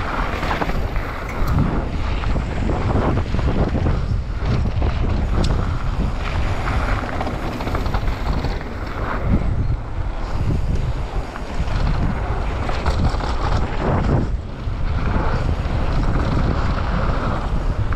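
Bicycle tyres crunch and rattle over a gravel trail.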